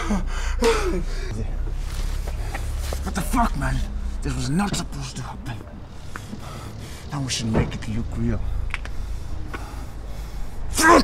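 A man speaks tensely and threateningly up close.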